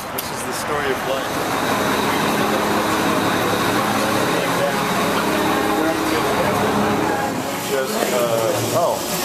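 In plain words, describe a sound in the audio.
A murmur of people chatting fills the background.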